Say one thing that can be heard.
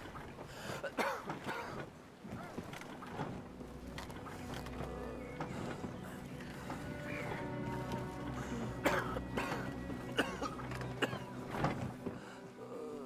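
A wooden cart rumbles as it rolls over planks and ground.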